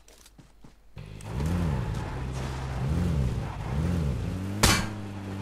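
A car engine revs and drives off over rough ground.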